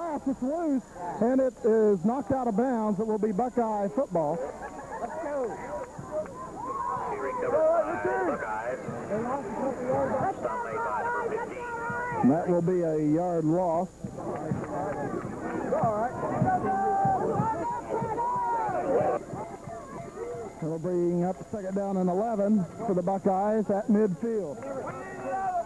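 Several men talk and shout close by, with many voices overlapping.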